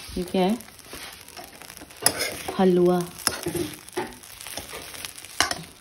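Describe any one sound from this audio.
A spatula scrapes and stirs in a metal pan.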